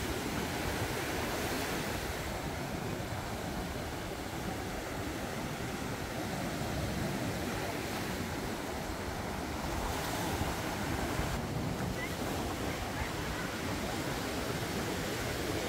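Wind blows against the microphone.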